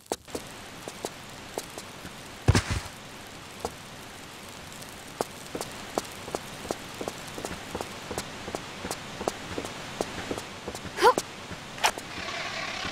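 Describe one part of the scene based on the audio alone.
Quick footsteps run across a hollow wooden floor.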